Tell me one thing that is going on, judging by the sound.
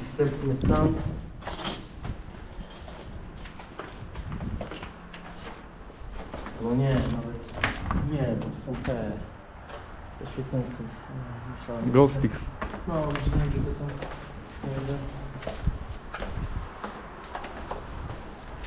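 A man talks calmly and quietly close by.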